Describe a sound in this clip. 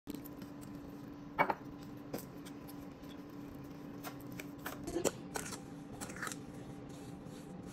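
A spatula scrapes and stirs thick wet mortar in a metal bowl.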